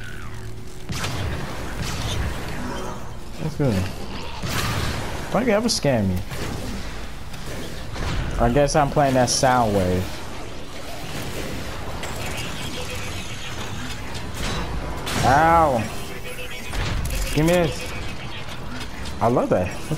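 Energy guns fire in sharp, whooshing bursts.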